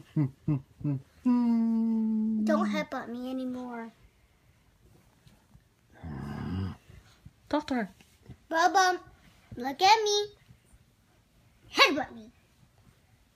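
A young boy talks playfully up close.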